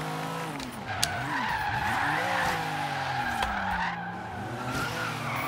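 Tyres screech as a car drifts around a corner.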